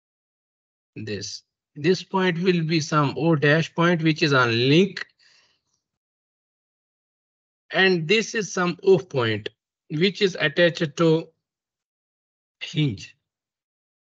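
A young man explains calmly over an online call, in short bursts with pauses.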